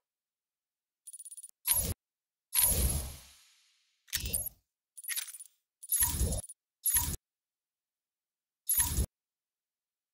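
Short electronic menu blips and whooshes sound several times.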